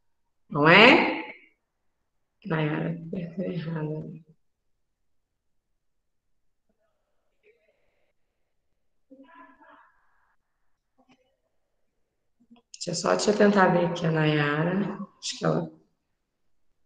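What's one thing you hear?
A young woman speaks calmly and closely into a microphone in short bursts.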